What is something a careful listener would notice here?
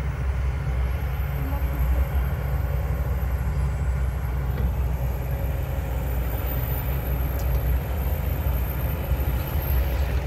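An excavator bucket scrapes and drops soil.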